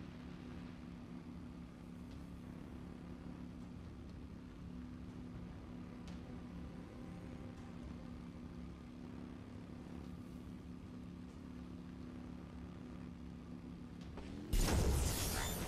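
A hovering engine hums low and steady.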